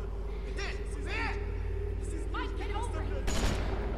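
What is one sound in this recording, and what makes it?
A young girl speaks in a pained, urgent voice.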